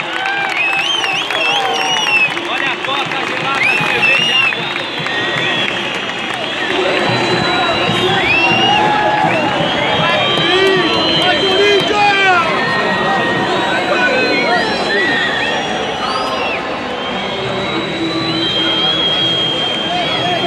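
A large crowd sings and chants loudly in an open stadium.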